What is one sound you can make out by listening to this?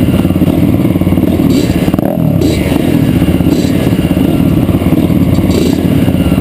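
Dirt bike engines idle and rumble loudly close by.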